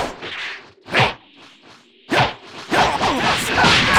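Punches and kicks thud in quick bursts.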